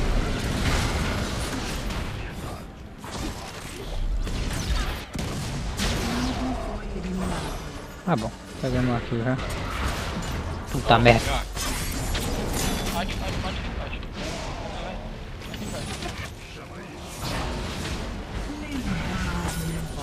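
Magic blasts and weapon hits crackle and boom in a fast video game battle.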